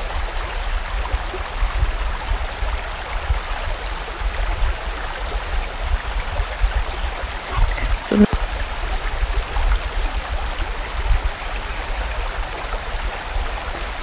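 A fast stream rushes and gurgles over rocks nearby.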